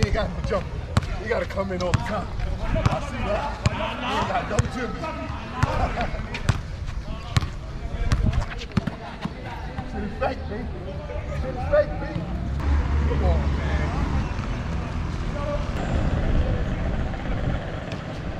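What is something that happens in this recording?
A basketball bounces on hard concrete.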